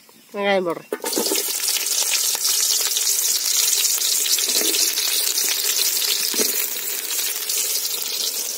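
Onions sizzle loudly in a hot pot.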